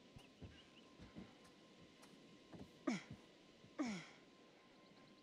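Soft thuds sound as someone climbs onto a ledge.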